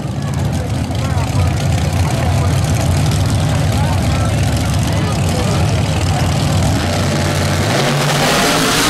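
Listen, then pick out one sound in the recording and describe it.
Race car engines idle with a deep, loud rumble.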